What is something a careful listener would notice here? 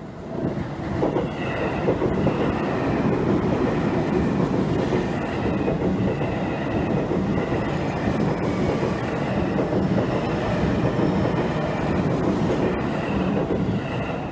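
An electric train rumbles past close by, its wheels clattering steadily over the rails.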